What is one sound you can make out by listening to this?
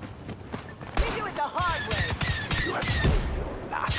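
Blaster shots zap and pop in rapid bursts.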